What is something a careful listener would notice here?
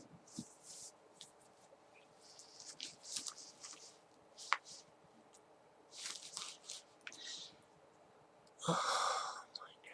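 A cap rustles as hands adjust it.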